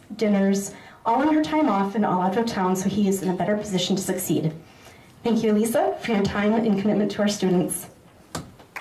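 A woman speaks with animation into a microphone, heard through loudspeakers.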